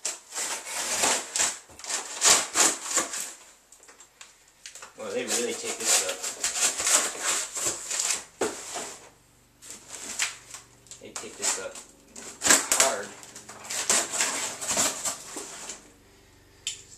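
Cardboard scrapes and packing tape rips as a box is cut open.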